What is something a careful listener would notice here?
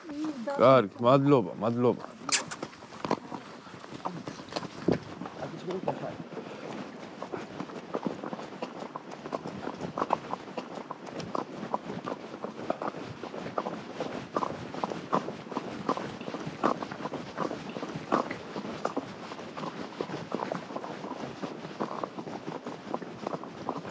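Horse hooves clop steadily on a dirt track.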